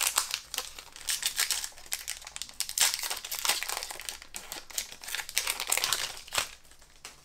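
A foil wrapper crinkles and rustles close by.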